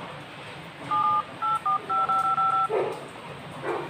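A phone beeps as number keys are pressed.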